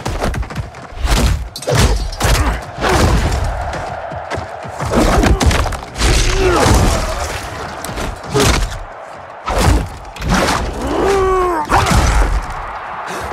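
Heavy blows and impacts thud and crash repeatedly.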